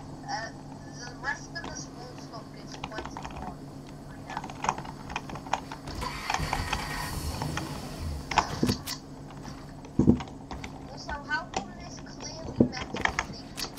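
Wooden walls and ramps clack into place in quick succession.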